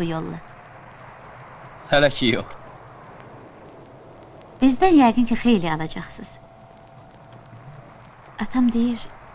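A man speaks briefly, close by.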